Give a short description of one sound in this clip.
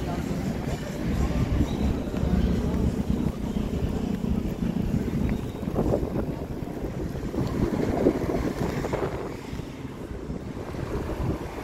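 A tram rumbles slowly along its rails close by.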